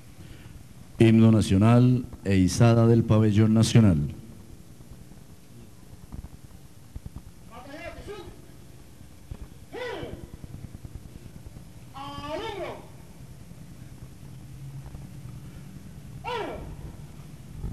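A man shouts loud drawn-out commands outdoors.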